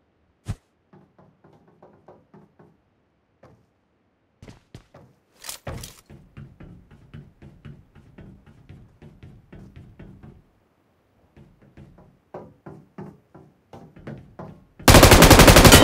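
Quick footsteps clatter on a hard floor.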